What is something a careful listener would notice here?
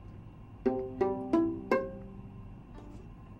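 A violin plays a few short, sharp notes close by.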